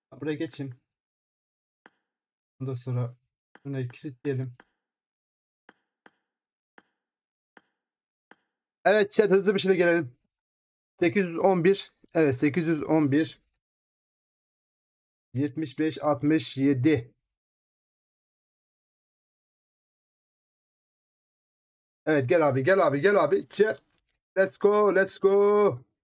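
A man talks with animation in short bursts, close to a microphone.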